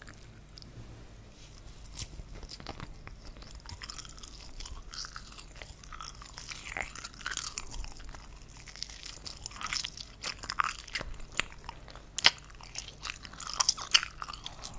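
A woman whispers softly and closely into a microphone.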